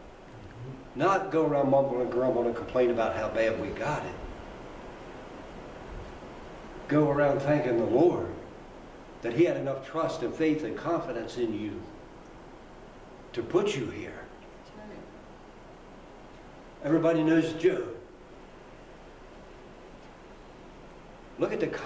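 An elderly man speaks with animation into a microphone in an echoing room.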